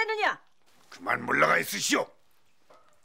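A middle-aged woman speaks with surprise, close by.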